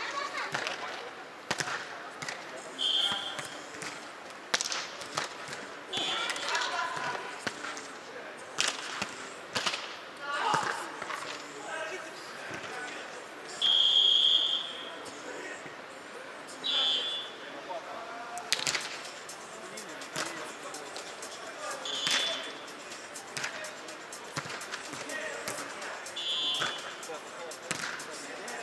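Players thump a volleyball back and forth in a large echoing hall.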